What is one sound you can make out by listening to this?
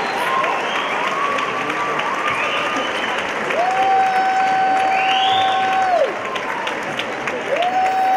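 A large crowd cheers and whoops loudly in a big echoing hall.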